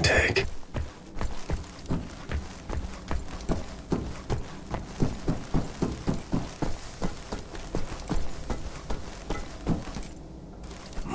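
Footsteps clank steadily on metal floors and stairs.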